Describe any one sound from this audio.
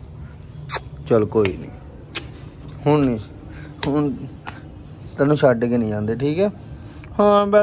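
A small dog whines.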